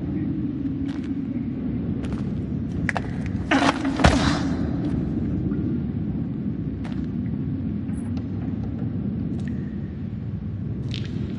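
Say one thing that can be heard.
Footsteps scuff slowly on a rocky floor.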